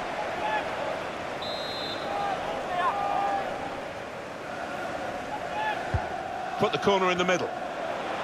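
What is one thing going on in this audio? A large stadium crowd roars and whistles steadily.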